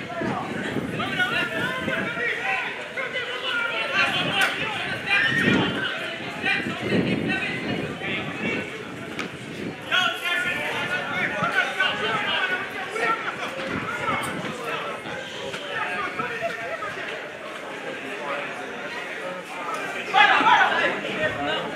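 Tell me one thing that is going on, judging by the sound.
Men and young men chat and talk nearby outdoors.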